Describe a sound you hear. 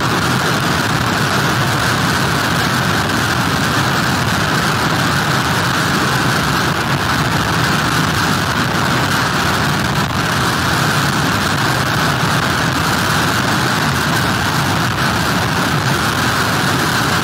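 Heavy rain lashes down steadily.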